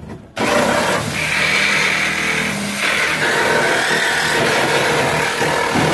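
A power tool with a wire brush whirs loudly, grinding against metal.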